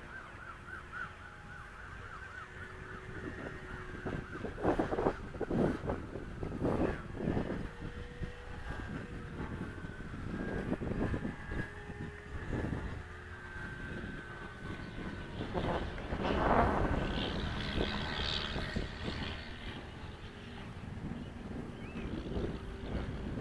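Wind rushes and buffets outdoors, gusting in bursts.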